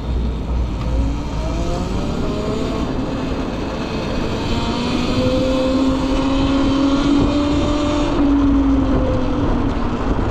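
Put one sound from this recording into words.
An electric motorbike's motor whines, rising in pitch as it speeds up.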